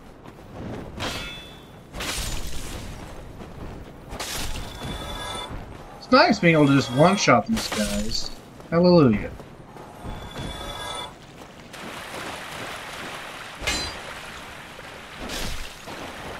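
Swords clash and strike in a fight.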